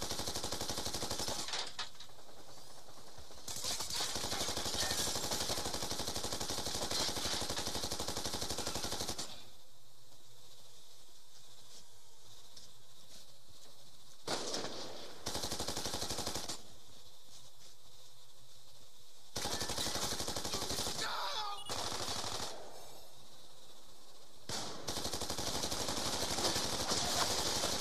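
A heavy mounted gun fires in rapid bursts.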